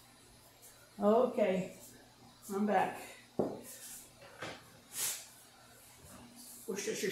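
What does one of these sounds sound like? An elderly woman speaks close by, in short calm phrases.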